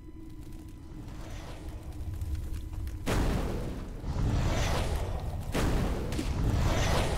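A fire roars and crackles, growing louder as it comes closer.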